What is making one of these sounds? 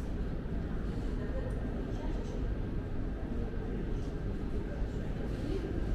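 Two elderly women talk quietly nearby in an echoing hall.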